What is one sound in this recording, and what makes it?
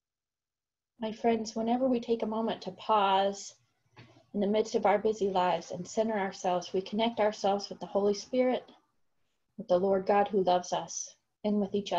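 A woman speaks calmly to an online call, heard through a computer microphone.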